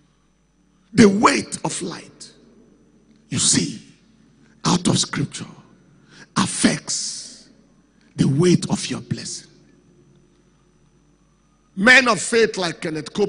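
A man preaches with animation into a microphone, in bursts with pauses, heard through a loudspeaker in a large room.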